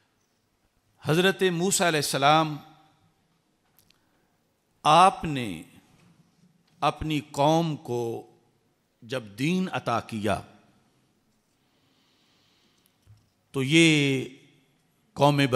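A man speaks into a microphone in measured, emphatic phrases with pauses between them.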